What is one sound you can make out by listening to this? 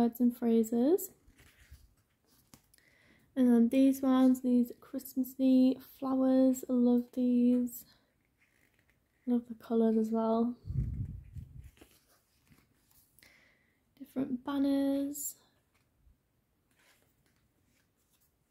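Sticker sheets rustle and crinkle as pages are flipped.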